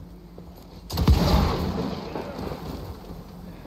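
A fiery explosion bursts with a loud roar.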